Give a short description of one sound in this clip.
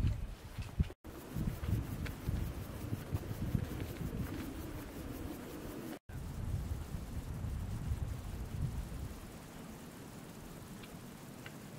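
Wind blows across the microphone outdoors in gusts.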